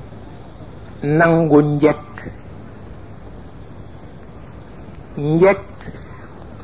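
An elderly man speaks slowly into a microphone, with pauses.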